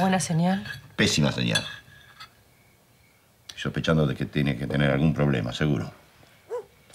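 A middle-aged man speaks calmly in a low voice, close by.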